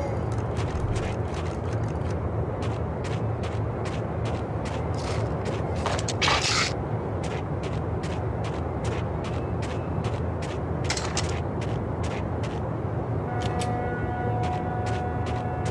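Quick footsteps run on a hard floor.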